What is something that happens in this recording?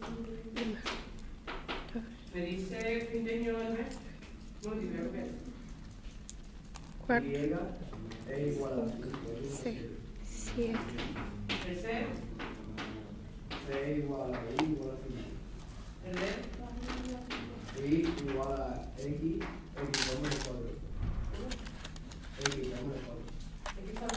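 Small plastic pieces click and clatter between fingers.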